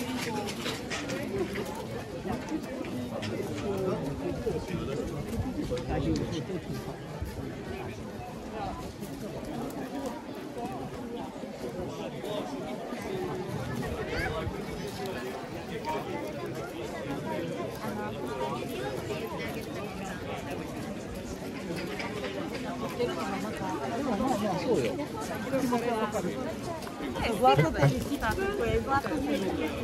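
A large crowd chatters all around outdoors.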